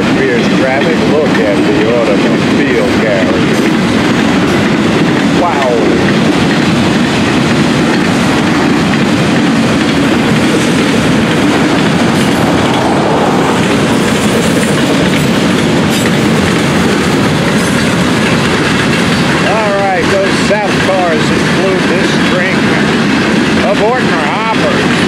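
Train wheels squeal on the rails now and then.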